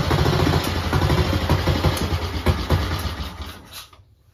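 A metal tool clinks against a motorcycle engine.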